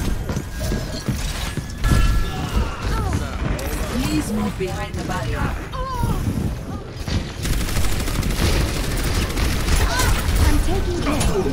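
Energy shots whoosh and crackle.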